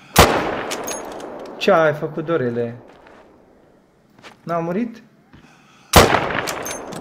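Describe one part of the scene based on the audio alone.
A rifle fires two loud shots that echo away.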